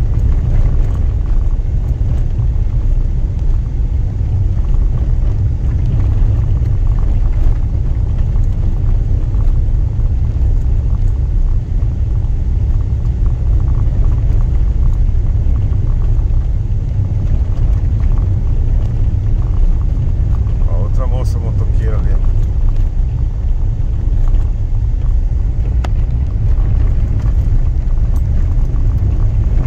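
Wind buffets loudly throughout.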